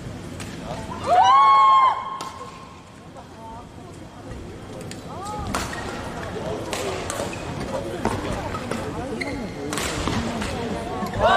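Sports shoes squeak on a hard court.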